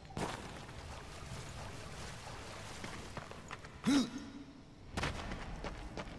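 Footsteps tap on stone as a game character runs.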